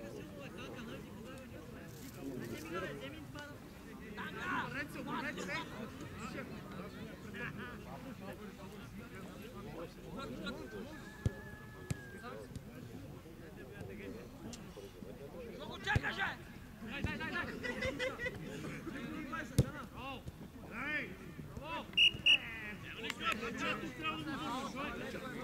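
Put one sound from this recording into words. A crowd of men chatters and shouts outdoors, heard from a distance.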